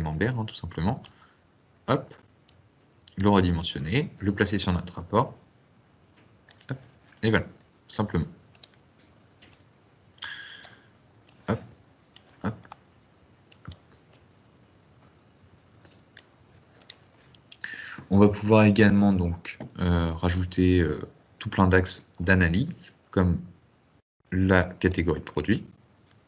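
A man speaks calmly through a microphone, as on an online call.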